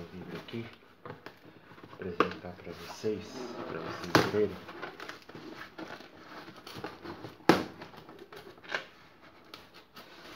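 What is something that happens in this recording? A knife scrapes and cuts through tape on a cardboard box.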